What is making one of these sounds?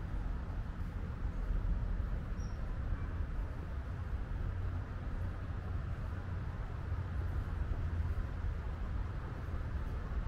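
Wind buffets outdoors with a steady low rumble.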